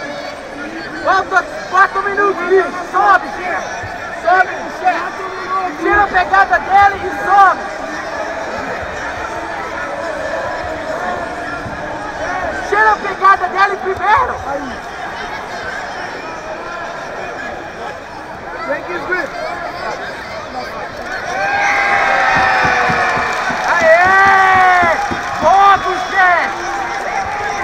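Men shout loudly and excitedly from the crowd, again and again.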